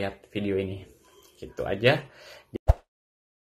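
A young man speaks calmly and close up.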